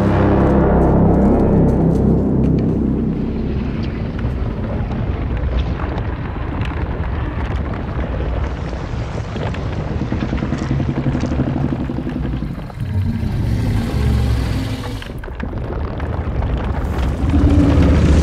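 A giant serpent lets out a deep, loud, rumbling roar.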